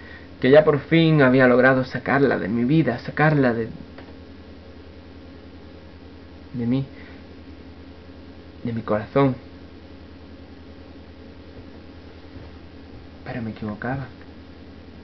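A young man speaks close to the microphone in short bursts.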